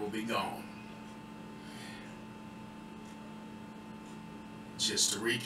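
A man speaks calmly close to a microphone, in short phrases broken by pauses.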